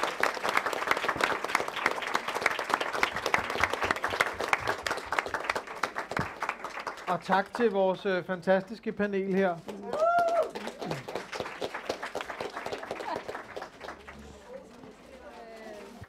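A large crowd applauds in a room, the clapping slowly fading.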